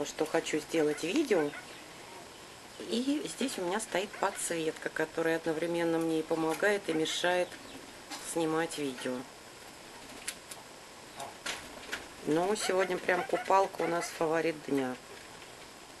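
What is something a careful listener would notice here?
A parrot chatters and squawks nearby.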